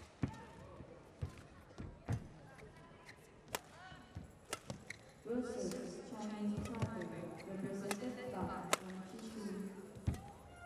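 Rackets smack a shuttlecock back and forth in a fast rally.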